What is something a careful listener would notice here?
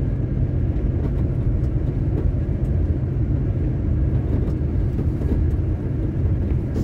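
Tyres hum on the road surface.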